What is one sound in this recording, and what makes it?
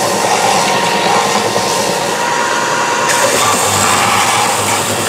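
A belt sander whirs loudly and steadily.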